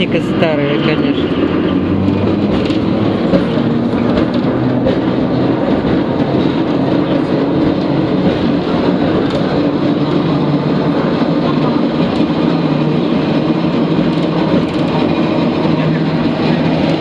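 A bus rattles as it drives along the street.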